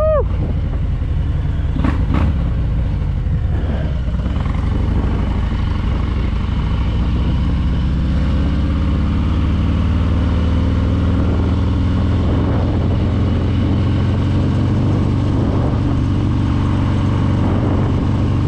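Wind rushes past the rider.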